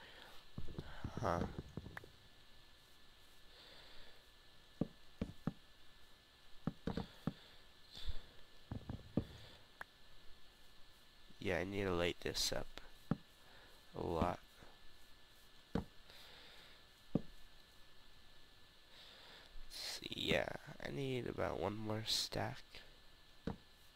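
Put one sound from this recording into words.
Wooden blocks are placed with short, soft knocks.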